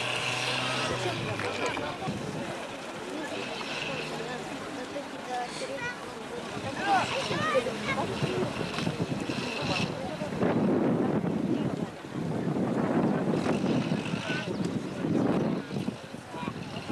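An off-road vehicle's engine revs and strains as it climbs a steep slope.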